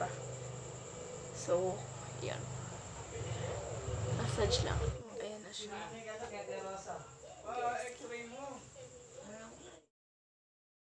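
A young woman talks calmly and closely into the microphone.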